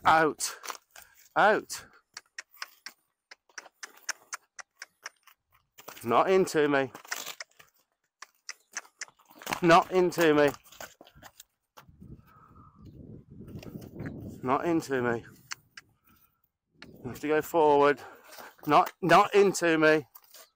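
A horse's hooves stamp and scrape on gravel.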